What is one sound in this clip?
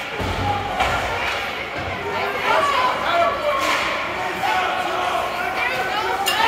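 Spectators chatter and call out in a large echoing rink.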